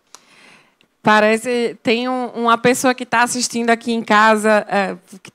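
A woman speaks loudly through a microphone.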